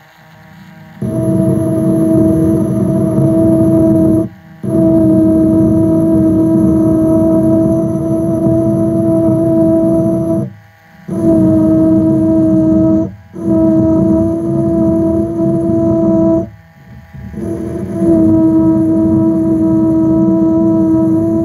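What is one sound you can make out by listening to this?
A small electric drill whirs steadily as it bores through a metal lid, stopping and starting a few times.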